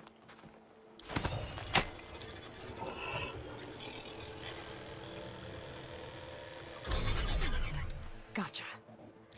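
An energy beam hums and crackles steadily.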